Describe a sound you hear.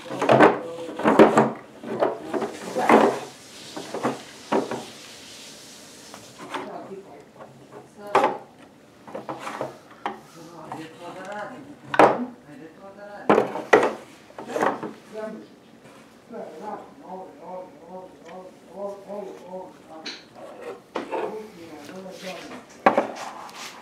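Small wooden toy pieces knock and clatter against a wooden dollhouse, close by.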